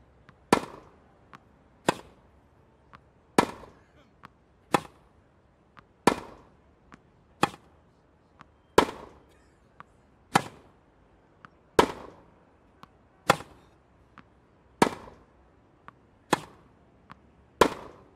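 A tennis ball bounces on the court.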